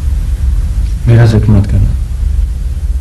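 A man speaks briefly in a calm voice.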